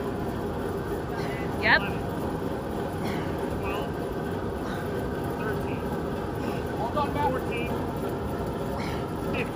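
A man calls out nearby.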